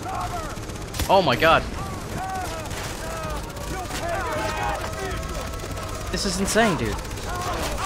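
A rifle fires loud gunshots.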